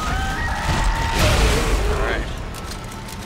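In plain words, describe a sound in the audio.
A weapon fires with a loud crackling blast.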